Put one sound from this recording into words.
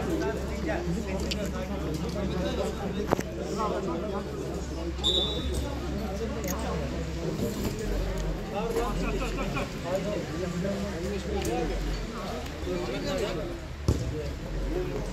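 Young men call out to each other outdoors during a football game.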